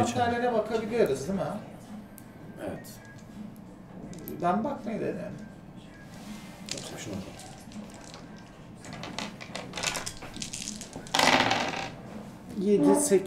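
A group of young men and women talk and laugh together.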